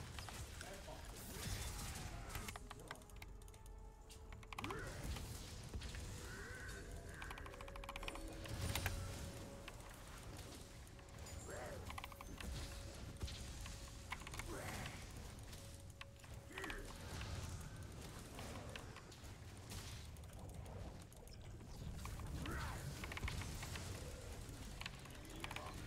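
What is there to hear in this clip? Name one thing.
Game sound effects of spells and hits play in quick bursts.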